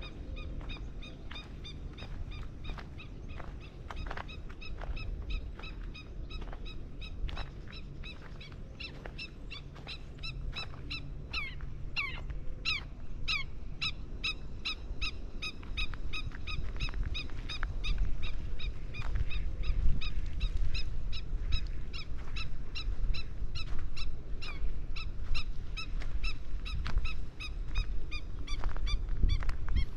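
Birds chirp and whistle repeatedly in the open air.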